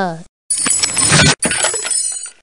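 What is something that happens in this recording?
A wooden crate bursts apart with a crack.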